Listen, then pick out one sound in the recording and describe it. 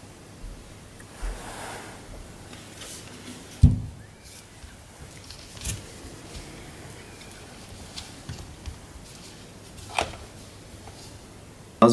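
A plastic tub rattles and taps in a hand.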